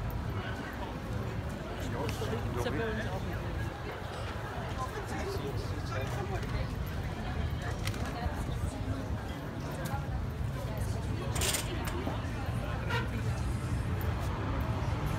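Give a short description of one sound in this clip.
A crowd of pedestrians murmurs and chatters outdoors on a busy pavement.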